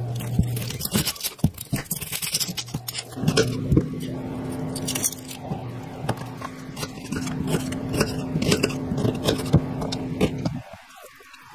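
A knife chops through an onion and taps a cutting board.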